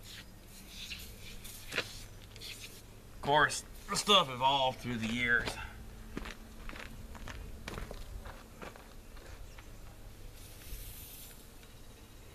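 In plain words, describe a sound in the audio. An aerosol can hisses in short sprays.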